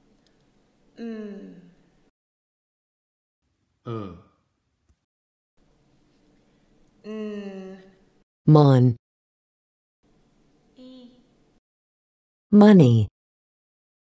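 A woman pronounces single speech sounds slowly, one at a time, with pauses between.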